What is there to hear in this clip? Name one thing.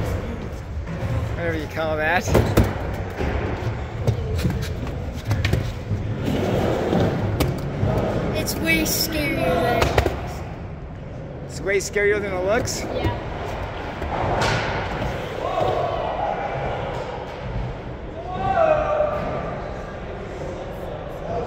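Skateboard wheels roll and rumble on a wooden ramp.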